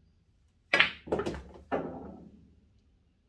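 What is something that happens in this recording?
Billiard balls knock together and roll into a pocket.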